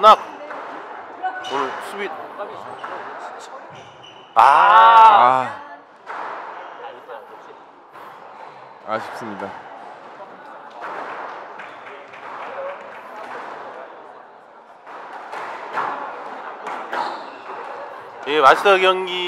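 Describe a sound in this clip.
A squash ball smacks off a racket and the walls with sharp echoing pops.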